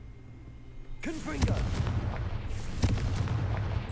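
A magic spell whooshes and crackles in a sudden burst.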